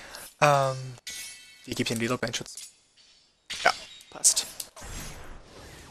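Short electronic menu tones blip and chime.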